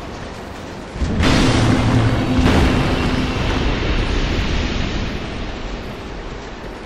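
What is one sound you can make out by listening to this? A deep chime rings out and slowly fades.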